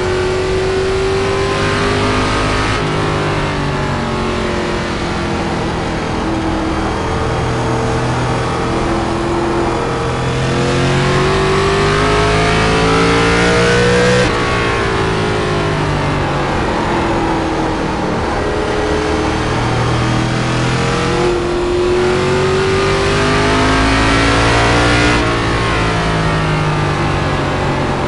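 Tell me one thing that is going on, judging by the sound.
A racing car engine roars loudly, rising and falling in pitch as it speeds up and slows down.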